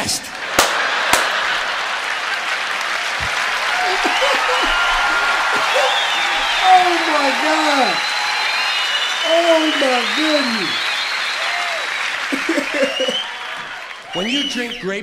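A crowd applauds, heard through a speaker.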